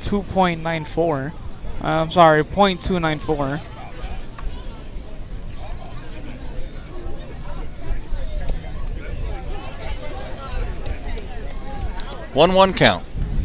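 A crowd murmurs in the stands outdoors.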